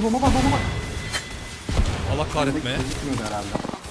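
Bursts of gunfire and explosions crackle and bang.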